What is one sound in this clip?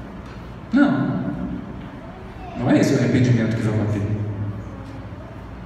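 A man speaks calmly into a microphone through a loudspeaker in an echoing hall.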